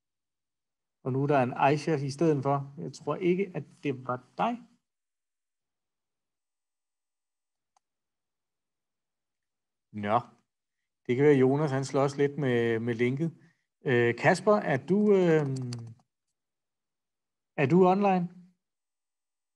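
A man speaks close to a microphone, calmly, with pauses.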